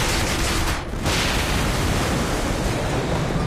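Wind rushes loudly past people falling through the air.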